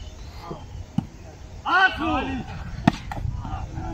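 A volleyball is struck with a sharp thump.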